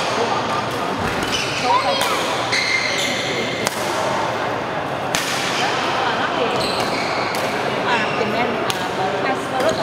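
Rackets strike a shuttlecock back and forth with sharp pops in an echoing hall.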